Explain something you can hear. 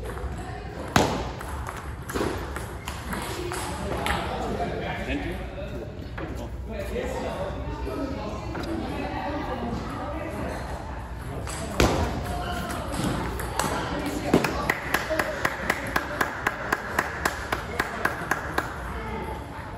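A table tennis ball clicks quickly back and forth off paddles and a table.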